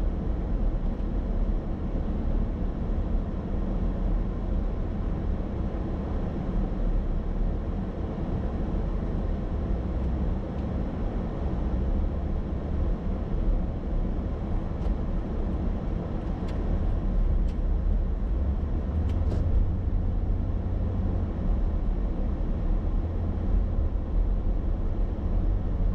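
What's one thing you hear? A car engine hums steadily with road noise from inside a moving car.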